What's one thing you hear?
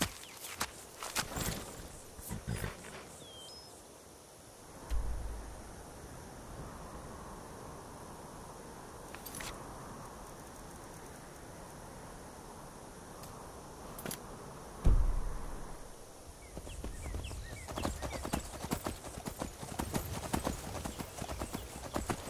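A horse's hooves thud and clop steadily on dirt and stone.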